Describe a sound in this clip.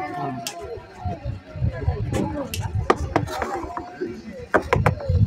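A crowd of children and women chatter nearby outdoors.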